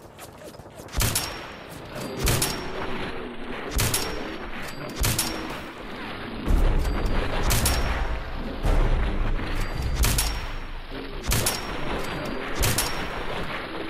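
A rifle fires single loud shots at a steady pace.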